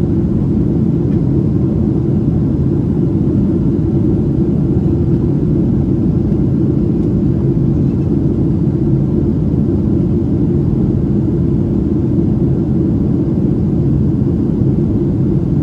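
Jet engines roar steadily with a deep, constant rumble inside an airliner cabin.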